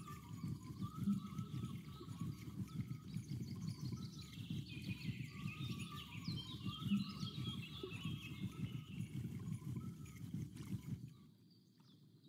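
Water laps steadily close by.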